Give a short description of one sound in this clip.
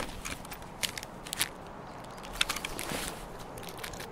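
Gear rustles and clicks as it is handled.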